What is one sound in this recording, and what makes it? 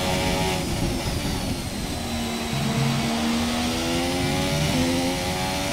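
A racing car engine drops in pitch through a downshift, then revs up high.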